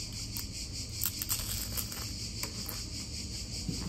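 A young woman bites into crunchy food.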